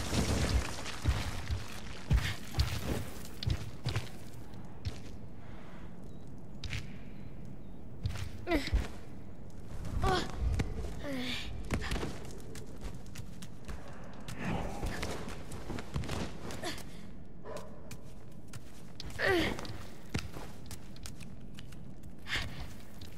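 Soft thumps and scrapes of climbing on stone come in bursts.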